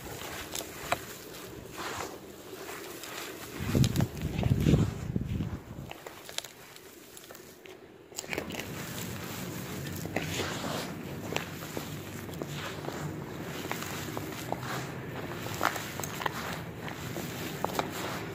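Loose gritty soil crumbles and patters as it falls from gloved hands.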